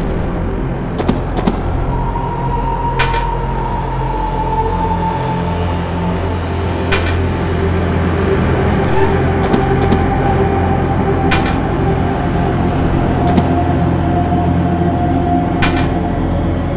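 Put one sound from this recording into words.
Short electronic blips sound from a video game.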